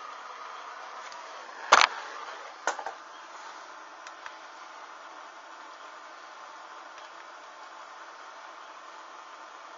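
A small flame burns with a soft hiss.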